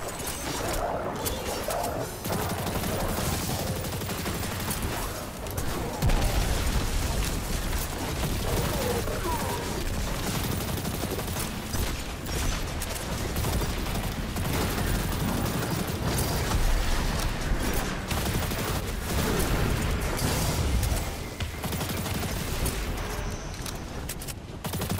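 Guns fire in rapid bursts with loud, crackling shots.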